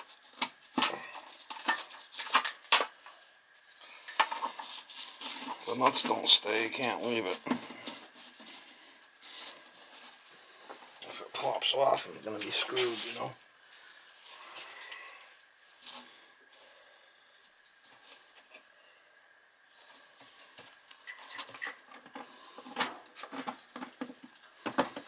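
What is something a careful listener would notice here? Small metal parts clink and tap against a metal plate.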